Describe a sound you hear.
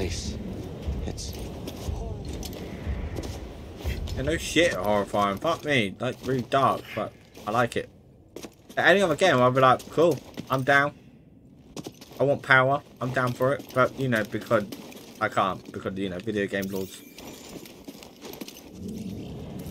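Footsteps patter quickly on stone and wood.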